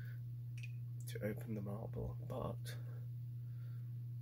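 A plastic bottle cap twists and clicks close by.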